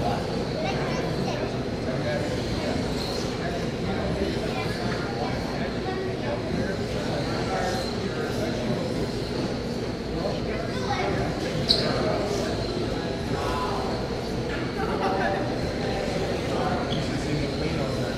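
A crowd of people chatter throughout a large echoing hall.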